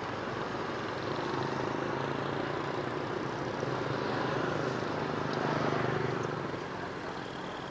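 A bus engine rumbles as it drives slowly past, getting louder and then fading.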